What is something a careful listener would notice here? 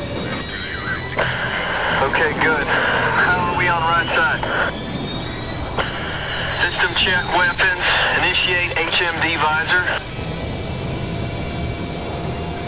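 A jet engine hums low and steadily.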